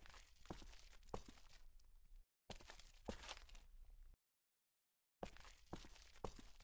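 Footsteps tread steadily on hard pavement.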